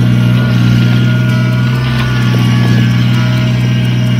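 A loader bucket scrapes into loose gravel.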